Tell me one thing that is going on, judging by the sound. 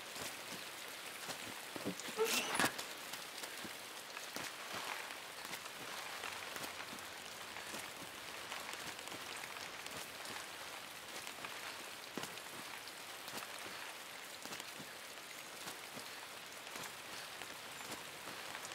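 Footsteps patter quickly on soft ground.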